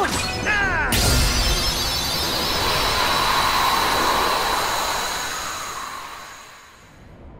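A bright shimmering chime rings out and slowly fades.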